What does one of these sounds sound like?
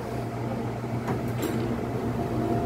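Train doors slide and thump.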